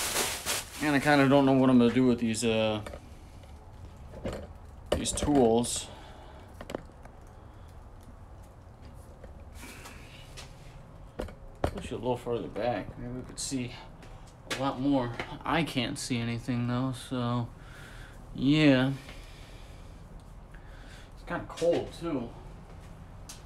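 A man talks casually and close to a microphone.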